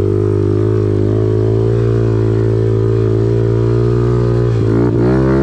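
A motorbike engine drones steadily close by.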